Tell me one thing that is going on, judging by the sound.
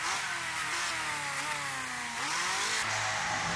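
An open-wheel race car engine winds down as the car slows.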